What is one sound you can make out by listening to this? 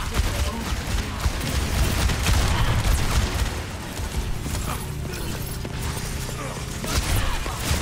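Gunshots crack rapidly nearby.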